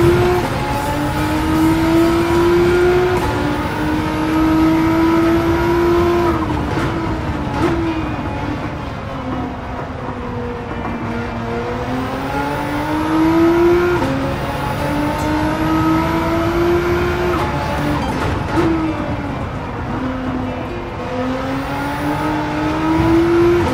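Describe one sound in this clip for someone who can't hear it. A race car engine roars loudly, rising in pitch as it speeds up and dropping through gear shifts and braking.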